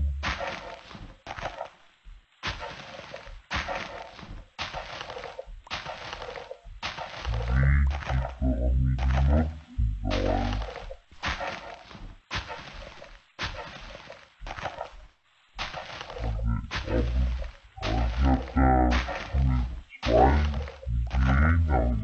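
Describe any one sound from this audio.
Dirt crunches over and over as it is dug out.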